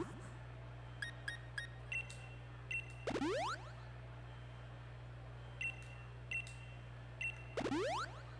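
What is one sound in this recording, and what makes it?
Short electronic menu blips sound as a cursor moves and selects.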